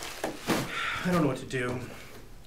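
A man speaks, close by.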